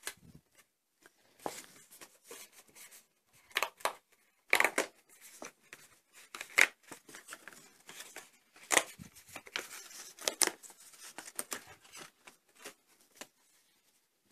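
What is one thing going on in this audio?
Paper sheets rustle and crinkle as hands handle them.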